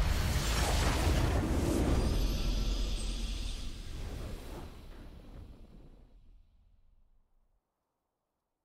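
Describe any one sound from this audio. A video game's victory fanfare plays loudly and fades away.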